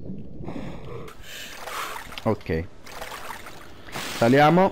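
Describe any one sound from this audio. Water splashes as a swimmer climbs out of a pool.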